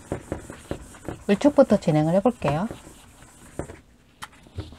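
An eraser rubs briskly across a chalkboard.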